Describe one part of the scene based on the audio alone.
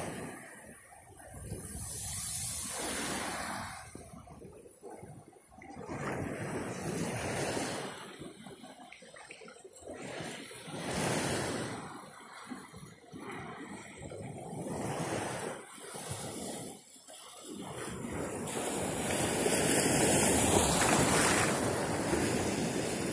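Wind gusts across the microphone outdoors.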